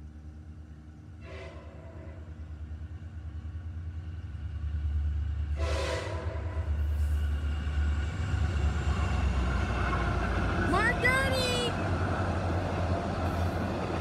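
A train rumbles closer and roars past nearby.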